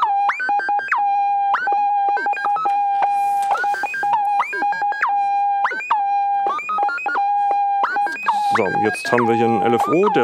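A modular synthesizer plays a steady electronic tone that jumps to higher notes in quick bursts.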